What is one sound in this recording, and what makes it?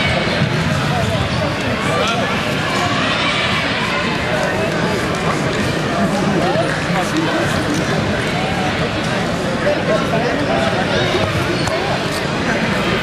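A crowd of men and women chatters and shouts throughout a large echoing hall.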